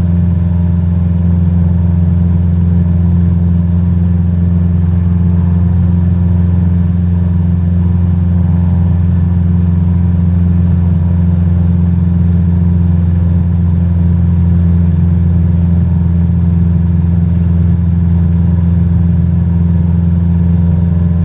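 A small propeller plane's engine drones steadily and loudly.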